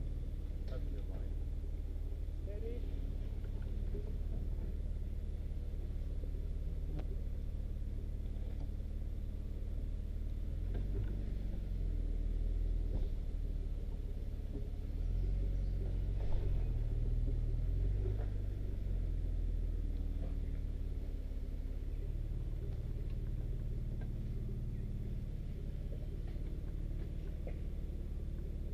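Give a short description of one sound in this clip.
Rocks crunch and knock under a vehicle's tyres.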